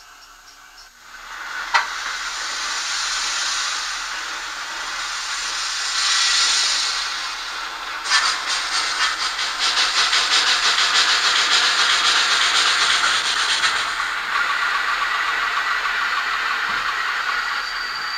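A small loudspeaker plays the hiss of steam escaping from a locomotive.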